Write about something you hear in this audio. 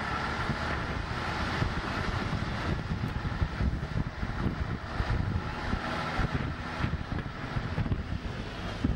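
Small waves wash gently onto a rocky shore.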